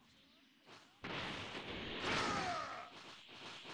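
A video game energy beam fires with a roaring whoosh.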